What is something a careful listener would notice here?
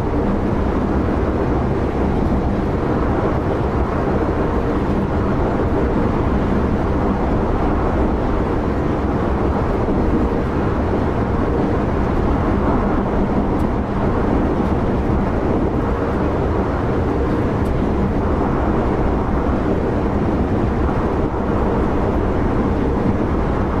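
A train rumbles steadily along the rails at high speed.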